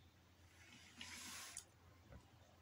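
Hands brush against a floor mat.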